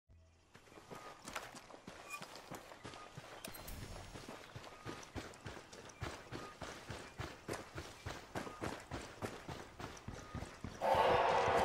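Footsteps rustle steadily through leafy undergrowth.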